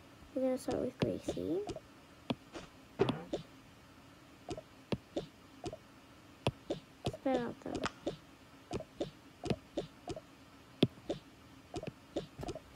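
Short soft pops and clicks sound again and again as cartoon figures are dropped into place.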